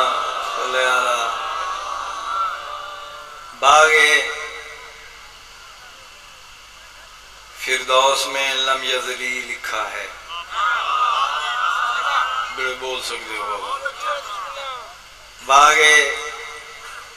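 A middle-aged man speaks with passion into a microphone, his voice ringing out over loudspeakers outdoors.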